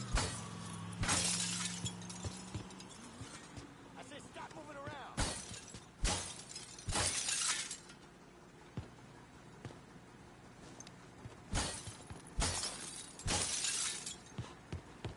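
Glass shatters and tinkles in sharp bursts.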